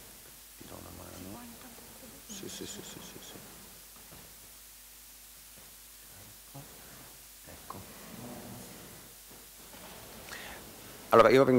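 A man and a woman talk quietly to each other off the microphone.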